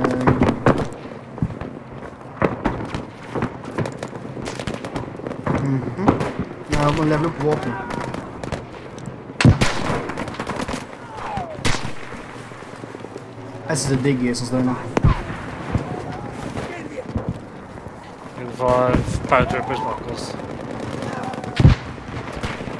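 A rifle shot cracks sharply.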